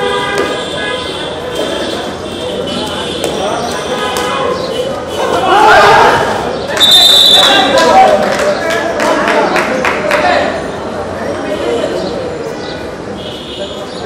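Shoes squeak and thud on a sports floor.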